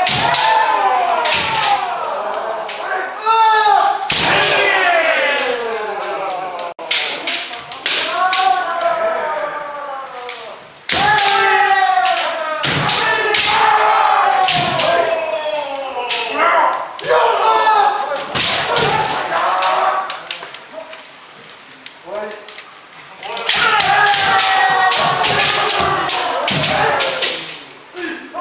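Young men shout loud, drawn-out battle cries in an echoing hall.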